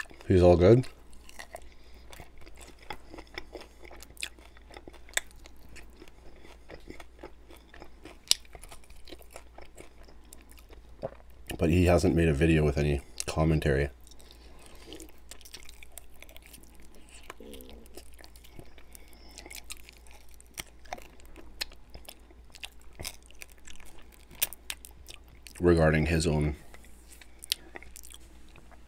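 A man chews chicken wings with wet, smacking sounds close to a microphone.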